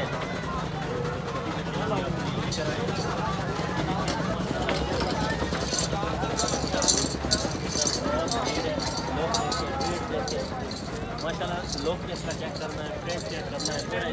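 Men talk nearby.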